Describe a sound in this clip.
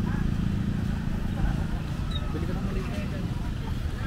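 Motorcycles pass by with buzzing engines.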